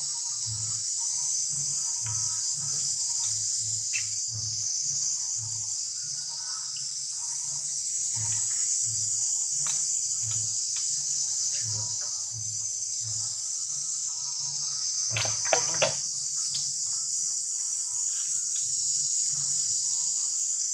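Dry leaves rustle as a baby monkey wriggles on the ground.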